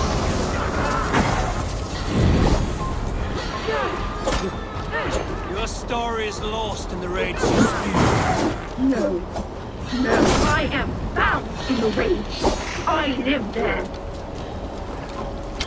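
Swords clash and swish in a fierce fight.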